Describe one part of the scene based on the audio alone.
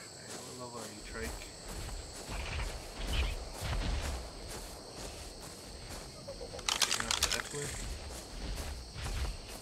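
Footsteps swish and thump through tall grass.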